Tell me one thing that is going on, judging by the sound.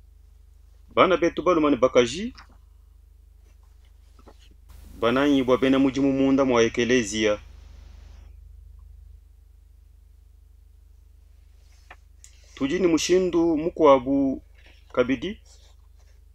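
A man speaks calmly and clearly into a close microphone, with pauses between phrases.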